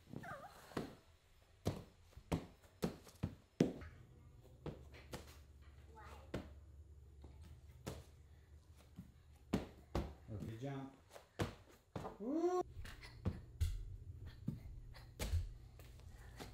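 Bare feet thump and land on soft mats.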